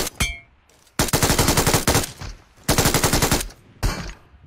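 Rapid gunfire bursts ring out.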